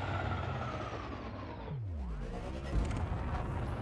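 A deep whooshing sweep falls in pitch and ends with a low thud.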